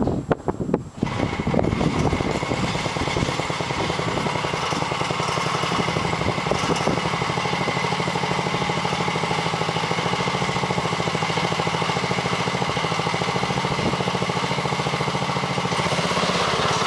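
A small two-stroke engine starts and idles with a steady buzzing rattle.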